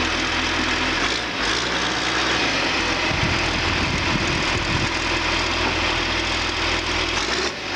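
Hydraulics whine as a backhoe arm moves.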